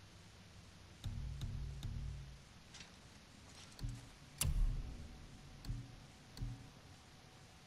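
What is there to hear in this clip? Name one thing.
Soft interface clicks and swooshes sound as game menu selections change.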